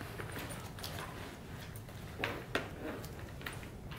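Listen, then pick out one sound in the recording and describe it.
A laptop keyboard clicks under typing.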